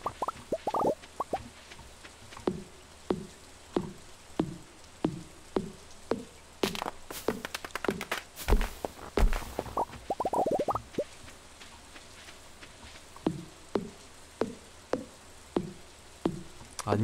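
An axe chops wood with sharp, steady knocks.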